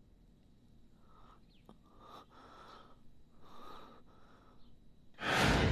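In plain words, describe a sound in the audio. A young man speaks weakly and softly.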